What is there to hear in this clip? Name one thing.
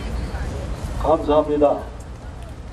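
An elderly man speaks into a microphone through a loudspeaker.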